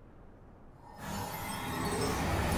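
A shimmering magical whoosh swells up loudly.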